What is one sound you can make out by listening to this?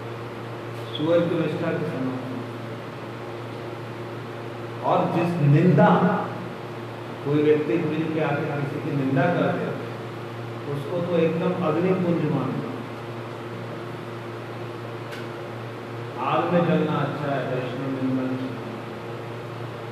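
An elderly man speaks calmly, with long pauses.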